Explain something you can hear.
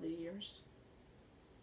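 A teenage boy speaks briefly close by.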